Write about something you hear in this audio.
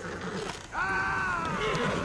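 A horse-drawn wagon rumbles along with hooves thudding.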